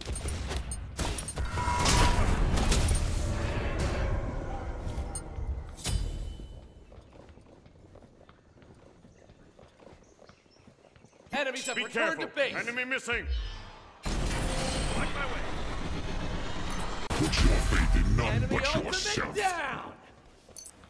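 Magic blasts crackle and boom in a game.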